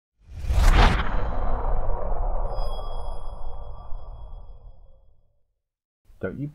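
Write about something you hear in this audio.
A deep whoosh swells into a rumbling boom and slowly fades away.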